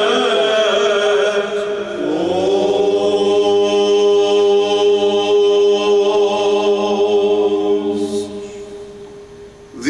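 A male choir chants in sustained harmony in a large hall.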